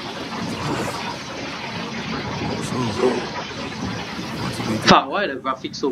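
A fire crackles and hisses nearby.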